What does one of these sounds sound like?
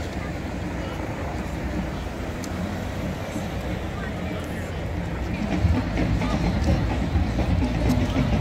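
A large crowd outdoors murmurs and cheers.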